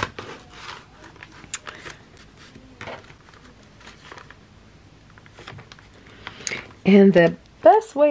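Hands rub and press on thick paper.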